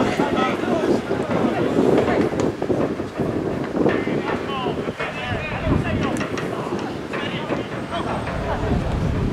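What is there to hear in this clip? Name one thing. A crowd of men and women chatters close by outdoors.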